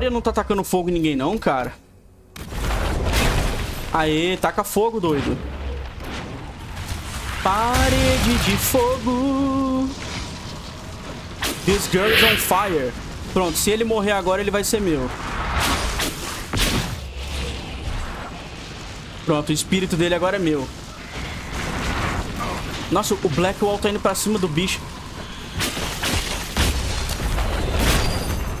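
Magic blasts crackle and boom during a fight.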